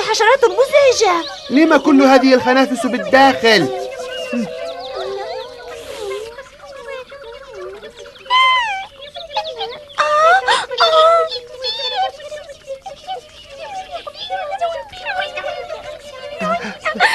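A woman speaks with animation in a cartoonish voice.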